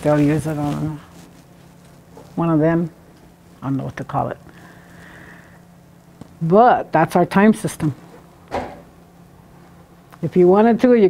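An elderly woman speaks slowly in short phrases, with pauses.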